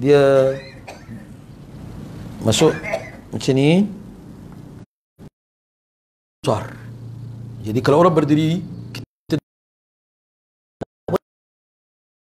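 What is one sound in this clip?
An elderly man speaks with animation through a microphone, pausing between phrases.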